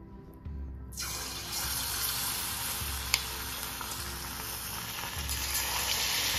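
Hot oil sizzles and crackles loudly as food is dropped into it.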